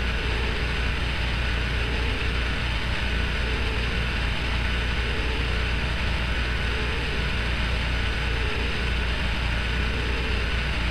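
A road roller engine rumbles as it drives slowly.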